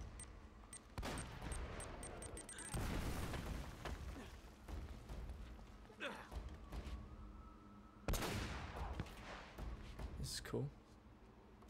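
Gunshots crack and boom sharply, echoing off stone.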